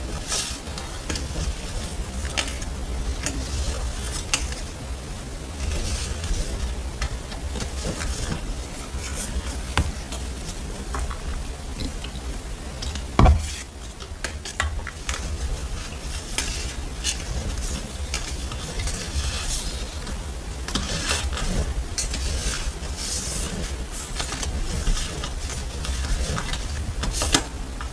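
Paper stickers rustle and crinkle as hands sort through them, close by.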